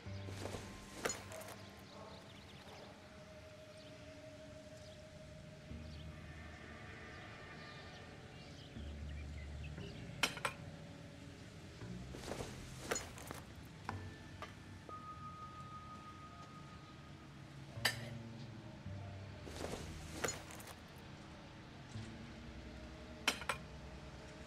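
Metal pipe pieces clank as they are fitted into place.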